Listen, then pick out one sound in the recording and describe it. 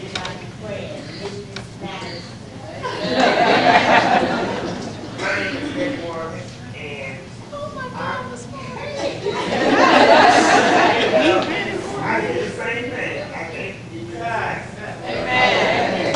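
A crowd of people murmurs and talks in a large echoing hall.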